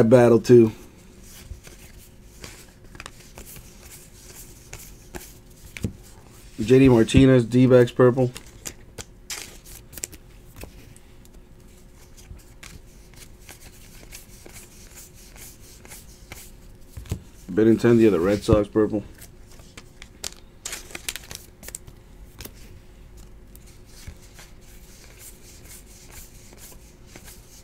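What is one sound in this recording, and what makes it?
Trading cards rustle and flick against each other as they are shuffled by hand.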